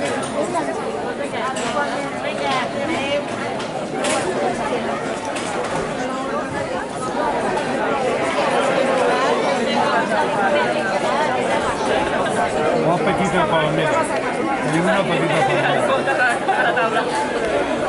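A large crowd of men and women chatters and calls out close by, outdoors, growing louder.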